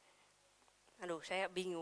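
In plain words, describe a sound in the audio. A young woman speaks through a microphone over loudspeakers.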